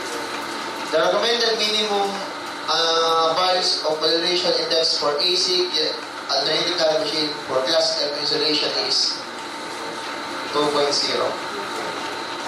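A man speaks steadily into a microphone, lecturing.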